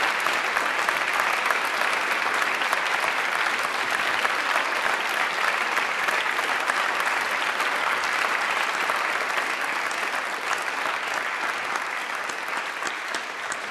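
A large crowd applauds in an echoing hall, slowly fading toward the end.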